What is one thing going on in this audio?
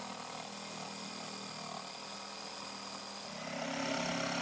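A jigsaw buzzes steadily, cutting through wood.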